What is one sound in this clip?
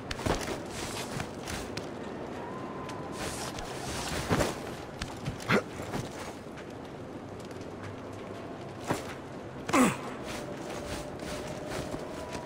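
Hands knock and scrape on wood and stone during a climb.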